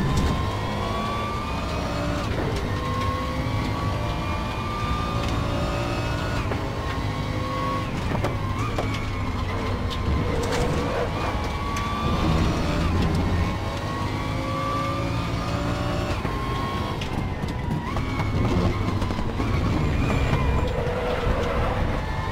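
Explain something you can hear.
A racing car engine revs high and drops as the gears shift.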